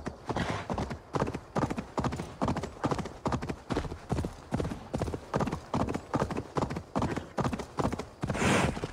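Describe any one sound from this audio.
A horse's hooves clop steadily on a dirt path at a brisk pace.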